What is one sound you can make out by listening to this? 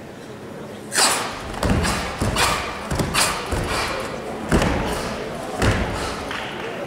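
Karate uniforms snap with quick strikes.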